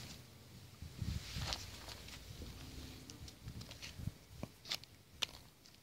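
A donkey foal's small hooves step on dry dirt.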